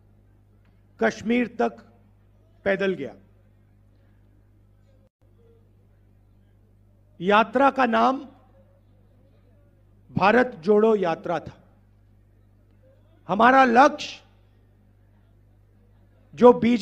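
A man speaks into a microphone in short bursts with long pauses, heard over a loudspeaker.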